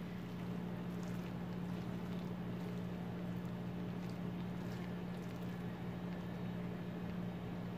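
A wooden spoon stirs and scrapes through noodles in a pan.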